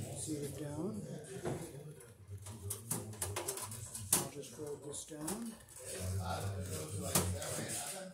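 Wires and metal parts click and tap under a man's hands.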